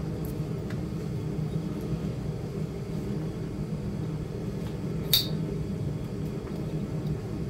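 A small carving tool scrapes softly against a piece of wood.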